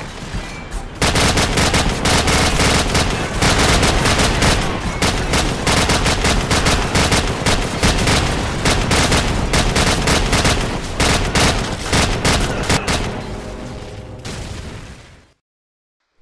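A machine gun fires rapid bursts at close range.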